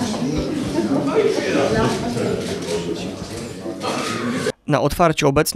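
A crowd of people murmurs and chats indoors.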